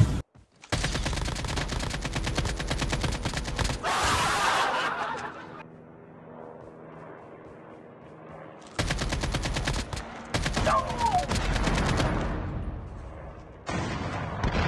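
An AK-47 rifle fires rapid automatic bursts.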